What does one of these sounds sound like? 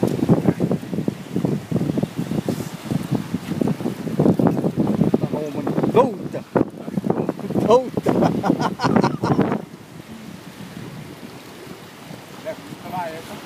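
Waves wash steadily over rocks nearby.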